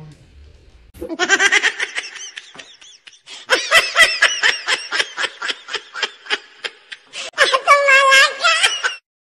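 A baby laughs hysterically with loud, shrieking bursts close by.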